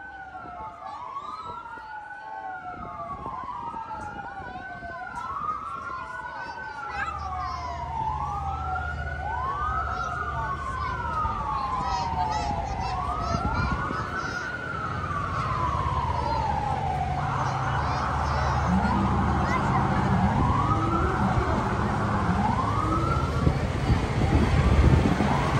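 A fire truck siren wails up and down, growing louder as it approaches.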